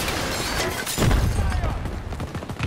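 A heavy explosion booms and rumbles.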